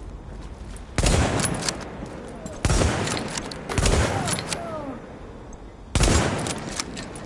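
A sniper rifle fires loud, echoing shots.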